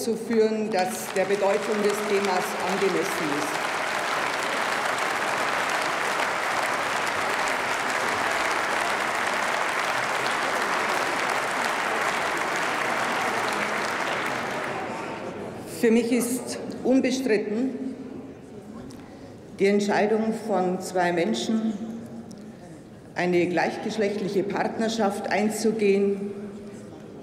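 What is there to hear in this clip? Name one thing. An elderly woman speaks calmly into a microphone.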